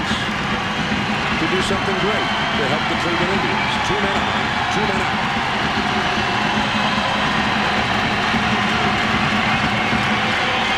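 A large crowd murmurs and chatters steadily in a stadium.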